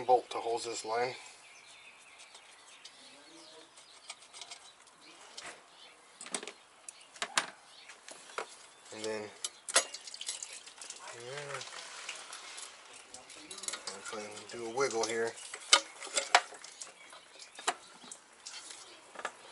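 Plastic engine parts click and knock under a man's hands.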